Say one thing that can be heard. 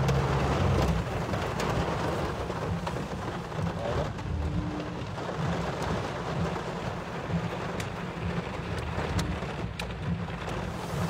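A car's tyres splash through deep water on the road.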